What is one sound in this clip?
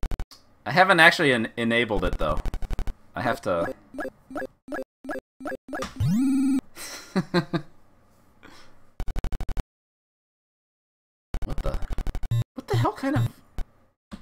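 An arcade game plays rapid electronic beeps and jingles.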